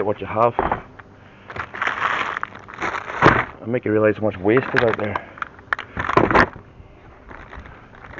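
Cardboard boxes rustle and scrape as they are handled.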